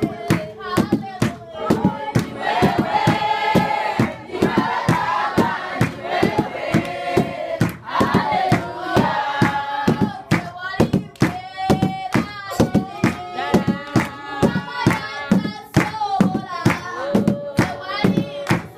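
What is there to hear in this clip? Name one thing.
A crowd of people sings together loudly.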